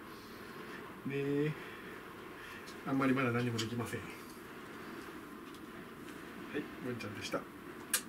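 A man talks playfully and softly, close by.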